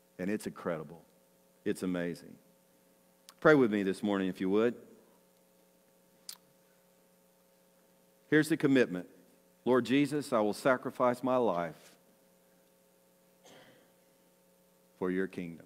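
An older man speaks calmly into a microphone, with pauses between phrases.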